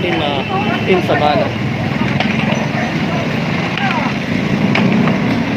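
A crowd chatters in a busy outdoor market.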